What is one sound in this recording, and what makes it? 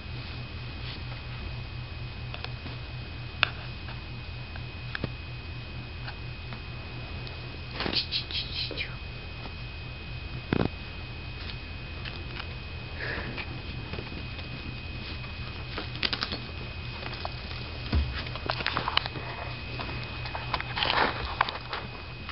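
Cats rustle and scratch in a soft pet bed and on carpet.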